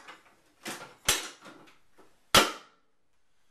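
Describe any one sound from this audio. A metal lid clanks shut on a metal box.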